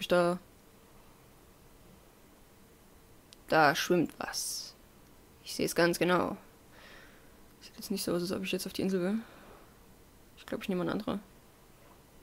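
A young woman talks casually into a close microphone, in short bursts.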